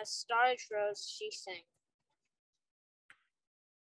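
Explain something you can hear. Paper pages rustle as a book is turned.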